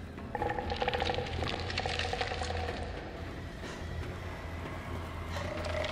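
Footsteps tread on a metal walkway.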